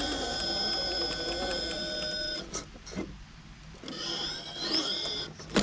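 A small electric motor whines steadily, pausing briefly.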